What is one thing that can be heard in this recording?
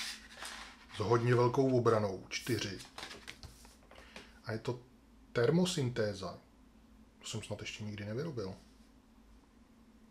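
Cards slide and tap on a tabletop.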